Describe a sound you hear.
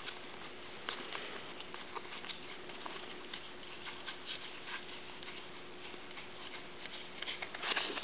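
Trading cards softly flick and rustle against each other.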